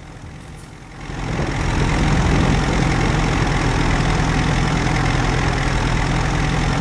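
A tractor engine rumbles steadily as it drives.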